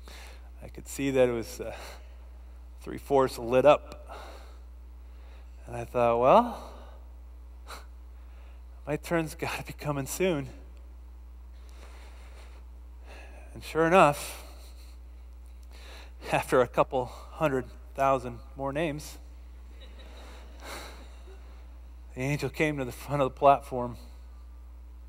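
A man speaks expressively into a headset microphone, in bursts with pauses.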